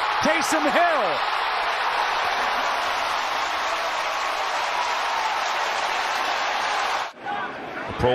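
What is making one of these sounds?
A large stadium crowd roars loudly.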